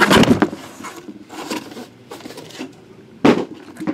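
Boxes knock against a hard surface.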